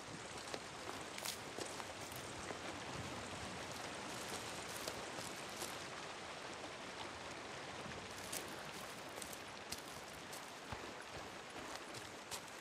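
Footsteps crunch on grass at a steady walking pace.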